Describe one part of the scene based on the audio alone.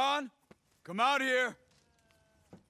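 A man speaks in a low, gruff voice nearby.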